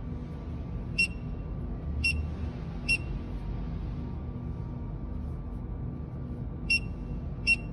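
A barcode scanner gives short, high electronic beeps.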